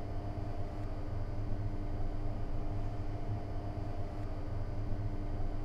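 An electric locomotive hums steadily while idling.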